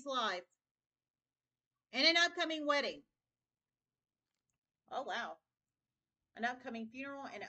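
A woman speaks close by, calmly and expressively, in short bursts with pauses.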